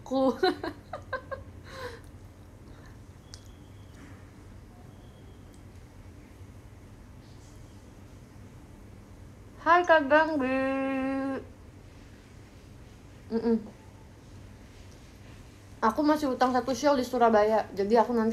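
A young woman talks and laughs close by, with animation.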